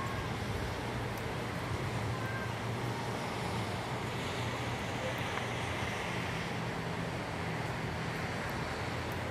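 Heavy rain pours down steadily outdoors.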